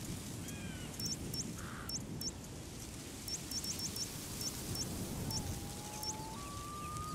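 Short electronic ticks sound as a map cursor moves.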